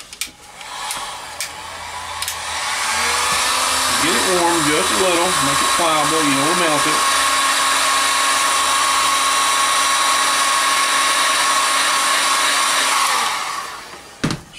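A heat gun blows hot air with a steady whoosh.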